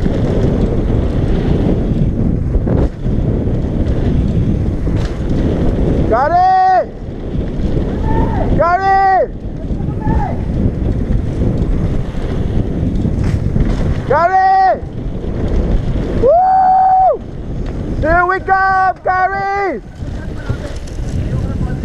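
Bicycle tyres crunch and rattle over a gravel trail.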